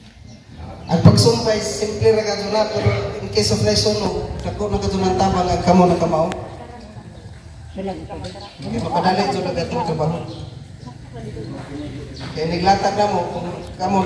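A man speaks loudly.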